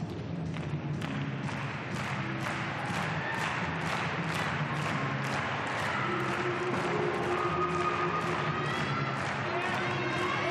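A crowd in a large hall applauds and cheers.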